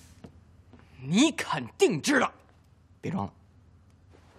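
A young man speaks quietly and insistently, close by.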